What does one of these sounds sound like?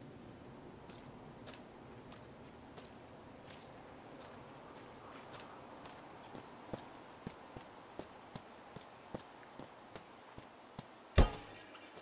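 Footsteps crunch softly on gravel and grass.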